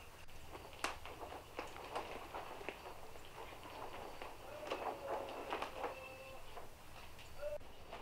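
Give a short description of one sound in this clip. Footsteps scuff on dry ground.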